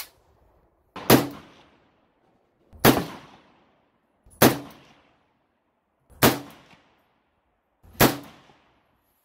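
Gunshots ring out one at a time, each followed by a short echo.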